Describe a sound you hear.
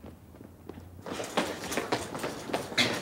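Footsteps run quickly on a hard floor in an echoing hall.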